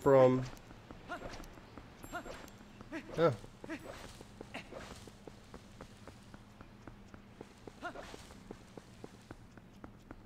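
Footsteps patter quickly on stone and grass.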